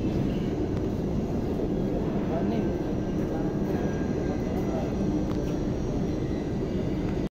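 A crowd of people murmurs and chatters nearby.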